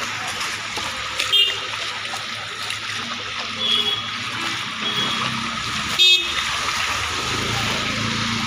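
Water splashes on a flooded street.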